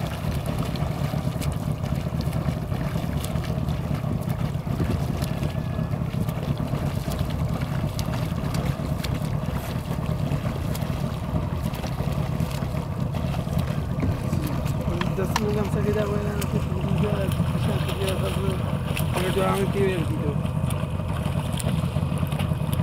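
A swimmer's arms splash rhythmically through calm water.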